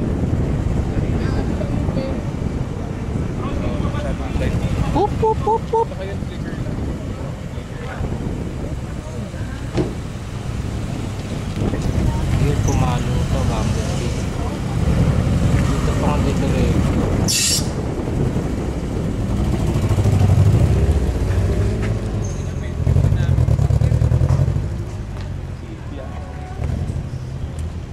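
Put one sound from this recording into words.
A car engine idles with a deep, rumbling exhaust.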